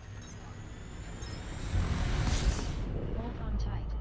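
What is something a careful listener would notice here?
A whooshing roar swells and peaks as a spaceship surges to high speed.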